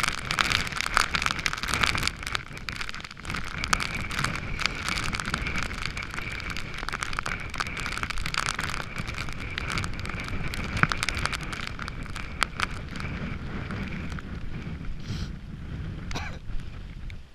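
Strong wind buffets and roars against the microphone outdoors.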